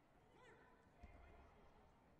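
A kick thuds against a padded body protector.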